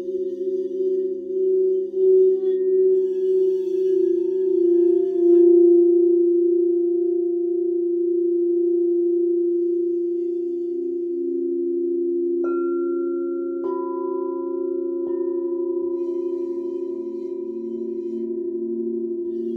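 Crystal singing bowls ring with steady, overlapping humming tones.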